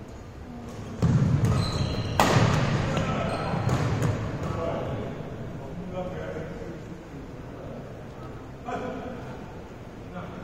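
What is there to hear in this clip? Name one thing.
Young men talk and call out across a large echoing hall.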